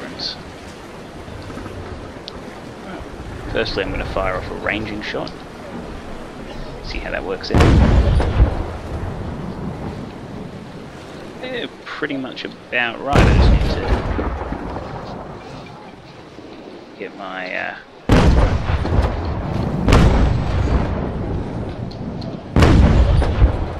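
Waves wash and roll steadily against a ship.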